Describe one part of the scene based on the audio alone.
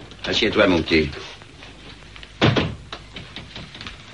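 A door shuts with a thud.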